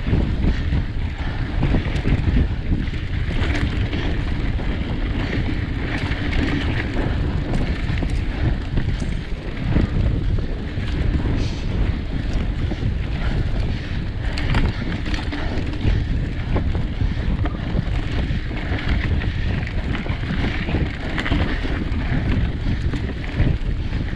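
Bicycle tyres roll over a bumpy dirt trail.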